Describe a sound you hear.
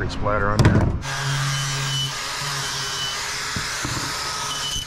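An angle grinder whirs steadily close by.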